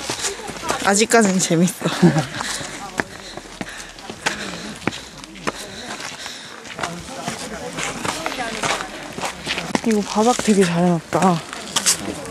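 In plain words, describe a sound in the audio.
A young woman talks animatedly close to the microphone.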